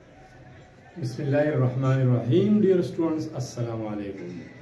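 A middle-aged man speaks calmly and clearly into a clip-on microphone, close by.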